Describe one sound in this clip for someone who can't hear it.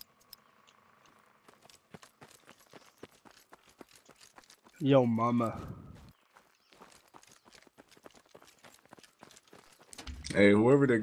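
Footsteps crunch on dry dirt.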